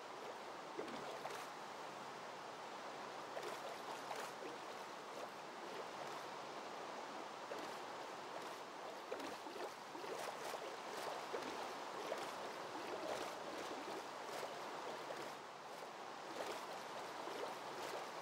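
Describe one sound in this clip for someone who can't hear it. Paddles splash rhythmically through water.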